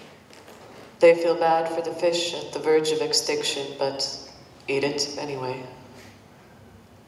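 A young woman speaks clearly in an echoing hall.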